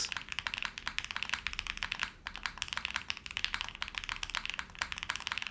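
Keys on a mechanical keyboard clack rapidly as someone types.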